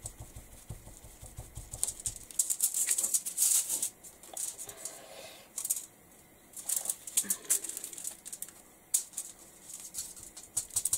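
Thin plastic sheets rustle and crinkle as they are handled.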